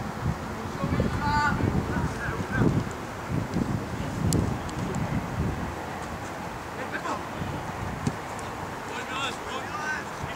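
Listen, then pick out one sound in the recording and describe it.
Young men shout to each other across an open field at a distance.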